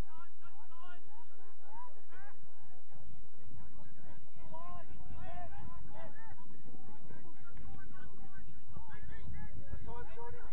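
Young players call out to each other across an open field in the distance.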